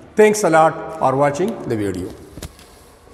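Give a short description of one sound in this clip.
A middle-aged man speaks with animation into a clip-on microphone.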